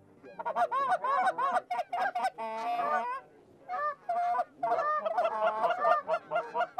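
Geese honk loudly and repeatedly overhead.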